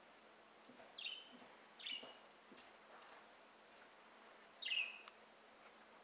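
Small birds chirp now and then outdoors.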